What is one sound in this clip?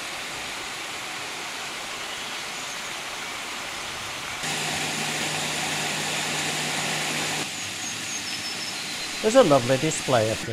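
Water rushes steadily over a small weir.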